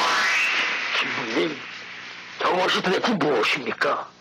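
An elderly man speaks with alarm.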